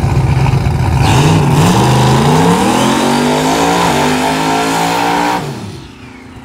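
A car engine revs up hard, rising in pitch.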